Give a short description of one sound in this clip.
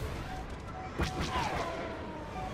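An explosion bursts with a crackle.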